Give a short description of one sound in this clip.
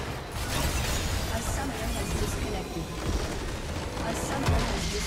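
Spell effects crackle and zap in a busy video game battle.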